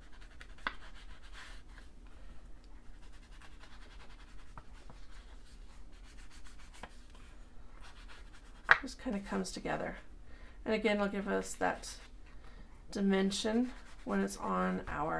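An ink dauber pats and scuffs softly against paper.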